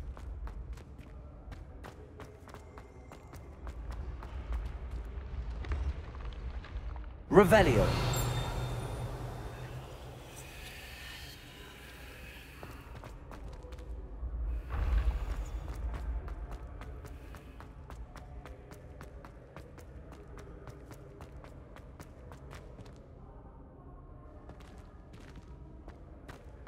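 Quick footsteps run and patter across a hard stone floor.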